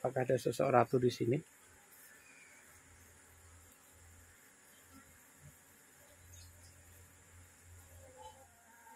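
A swarm of honeybees buzzes.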